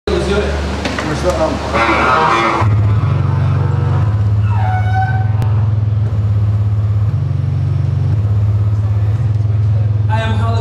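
A bass saxophone plays a slow line of deep, steady low notes.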